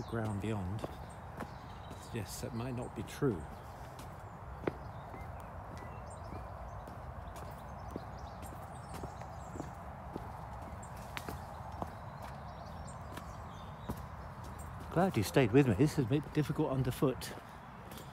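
Footsteps tread softly on a dirt path outdoors.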